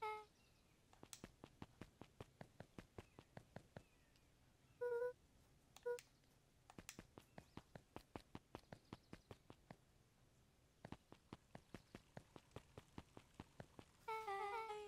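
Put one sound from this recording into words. Quick, light footsteps tap in a steady rhythm.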